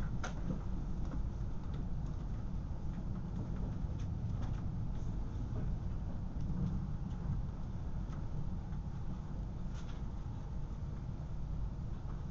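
An electric train rumbles along the tracks, heard from inside a carriage.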